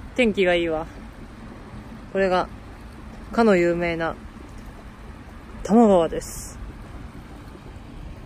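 Shallow water ripples and trickles over a low weir.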